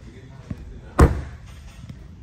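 A car door shuts with a heavy thud.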